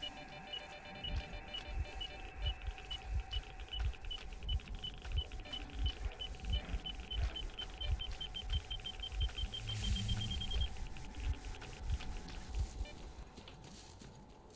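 Footsteps rustle and splash through tall reeds and water.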